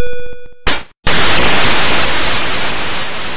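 A burst of harsh game noise hisses loudly.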